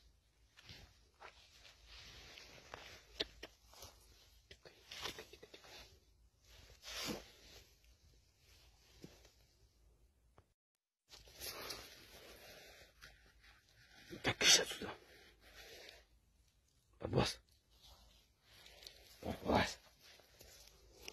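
A badger's paws scuffle on dry leaves and soil.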